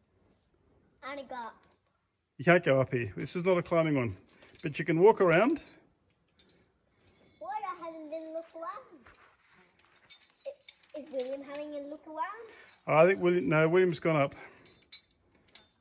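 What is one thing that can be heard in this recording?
A young child talks and calls out nearby, outdoors.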